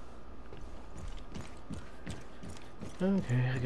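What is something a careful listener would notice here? Footsteps thud softly on a metal floor.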